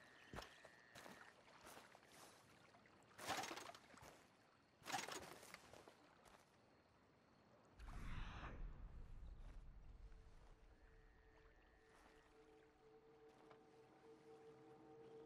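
Footsteps crunch and scrape over rocky ground.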